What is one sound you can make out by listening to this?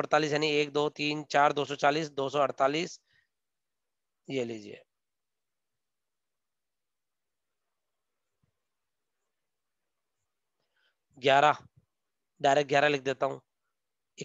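A man speaks calmly into a microphone, as if over an online call, pausing now and then.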